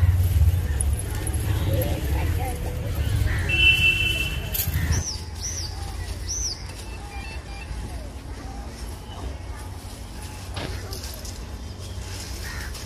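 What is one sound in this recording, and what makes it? Leafy plants rustle as people walk through them.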